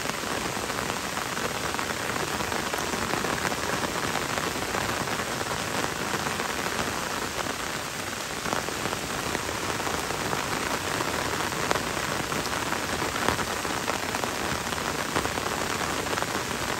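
Gentle rain patters on leaves.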